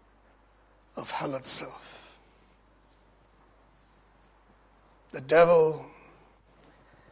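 An elderly man speaks emphatically into a microphone in short bursts, with pauses between.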